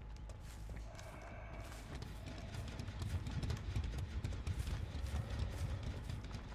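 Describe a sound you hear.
Heavy footsteps tread through grass.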